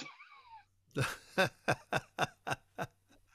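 A middle-aged woman laughs over an online call.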